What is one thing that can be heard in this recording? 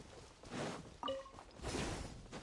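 A bright chime rings as an item is picked up.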